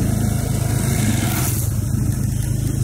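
Another motorbike passes close by.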